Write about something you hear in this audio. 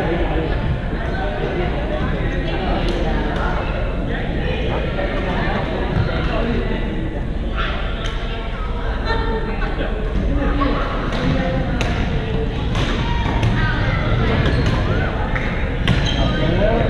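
Many young men and women chatter and call out across an echoing hall.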